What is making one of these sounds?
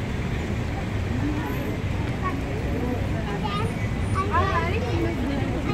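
Several people chatter nearby outdoors.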